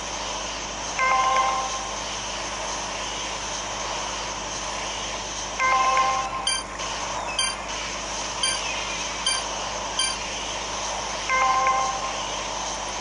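A bright electronic chime rings out several times.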